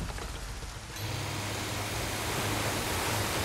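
Water splashes and churns behind a moving boat.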